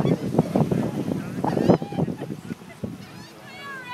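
Gusts of wind rumble across the microphone outdoors.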